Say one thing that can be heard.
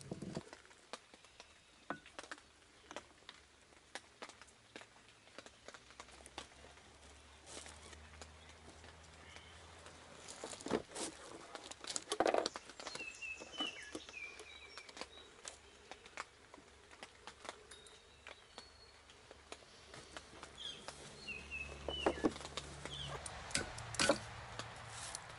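Metal engine parts clink and clatter as they are lifted and set down.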